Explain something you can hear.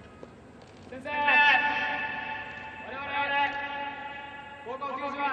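A young man shouts loudly into a microphone, echoing through a large stadium.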